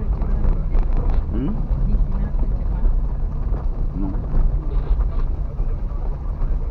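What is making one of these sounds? A car rumbles slowly along a bumpy dirt road.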